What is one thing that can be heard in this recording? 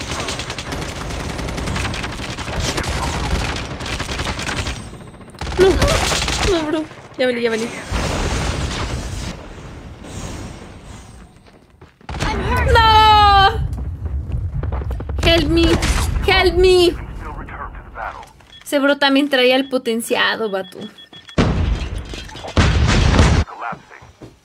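Gunfire bursts rapidly from a video game.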